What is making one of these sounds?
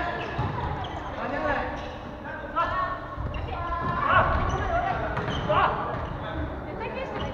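Sneakers squeak on a wooden gym floor.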